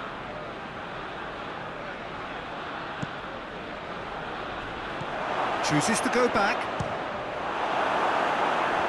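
A large crowd roars steadily in a stadium, swelling louder toward the end.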